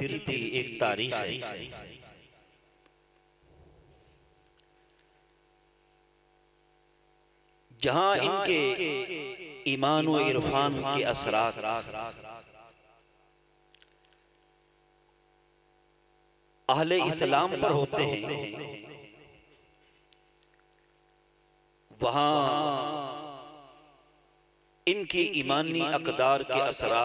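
A middle-aged man speaks forcefully into a microphone, in bursts with pauses, his voice echoing through a loudspeaker.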